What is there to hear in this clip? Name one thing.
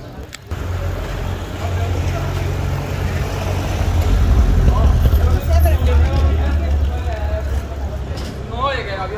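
A car engine rumbles close by as the car drives slowly ahead.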